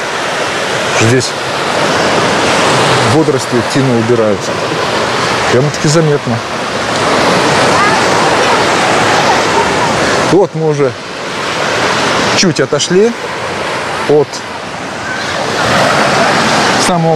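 Children and adults call out and chatter nearby on the beach.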